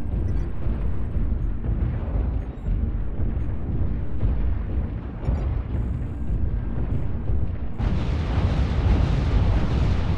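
A huge walking machine rumbles deeply and thuds with each heavy stride.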